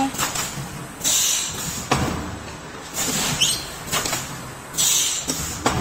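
Compressed air hisses in short bursts.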